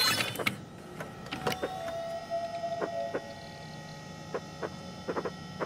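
Short game menu blips sound as options are selected.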